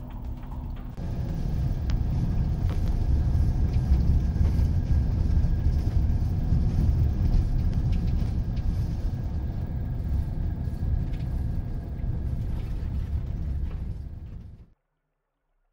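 Tyres roll on a gravel road.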